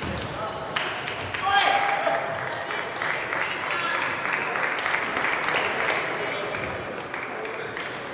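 Table tennis balls click on tables and paddles all around.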